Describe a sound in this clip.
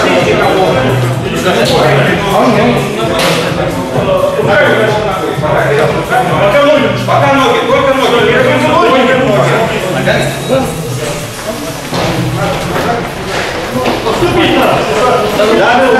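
Several men talk with one another nearby in a room with some echo.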